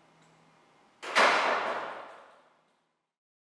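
A heavy door slams shut and the sound rings out in an echoing hall.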